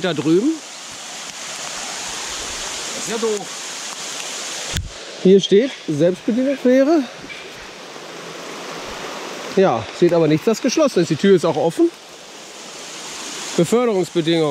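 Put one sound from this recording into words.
A river rushes steadily nearby.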